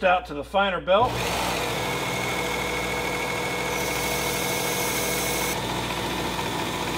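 A belt grinder whirs steadily.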